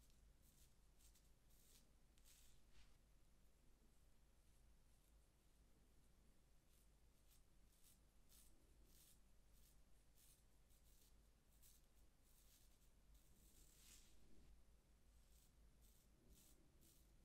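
A razor scrapes through stubble in short, rasping strokes close by.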